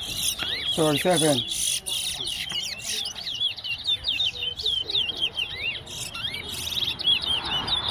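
Caged songbirds sing rapid, high chirping trills close by.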